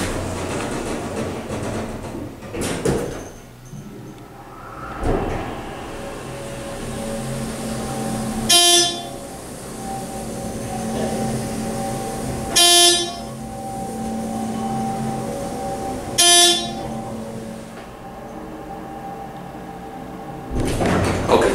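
An elevator car hums steadily as it rises.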